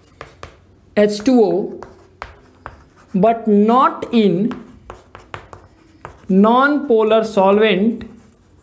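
A man speaks calmly, as if explaining, close by.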